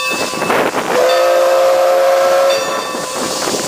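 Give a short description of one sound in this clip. A steam locomotive whistle blows loudly and steadily.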